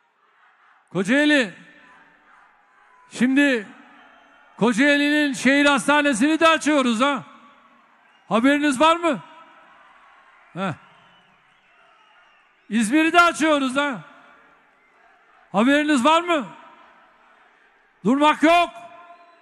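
An elderly man speaks forcefully through a microphone in a large echoing hall.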